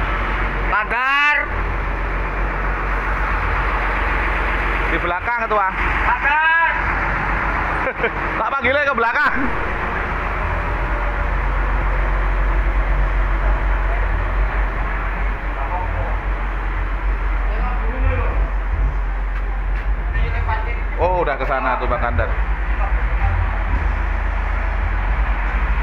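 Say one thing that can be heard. Traffic hums steadily on a nearby street.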